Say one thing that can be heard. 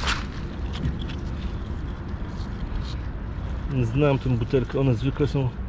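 A glass bottle scrapes against stones as it is picked up.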